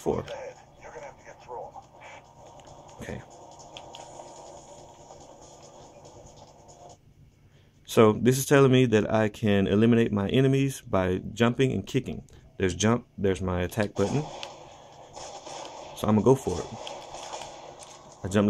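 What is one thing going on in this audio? Buttons on a game controller click softly.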